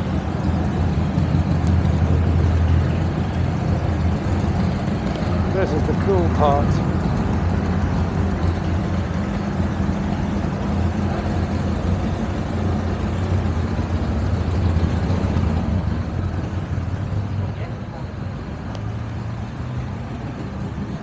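A motorcycle engine hums low and steady as the bike rolls slowly.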